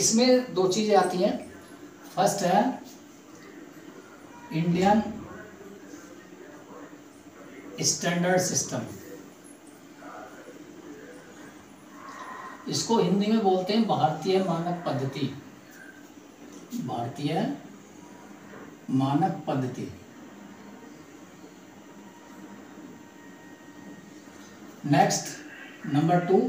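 A man speaks calmly, explaining in bursts with pauses, close by.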